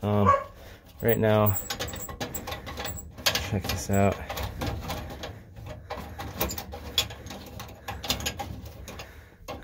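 A metal panel rattles and clicks.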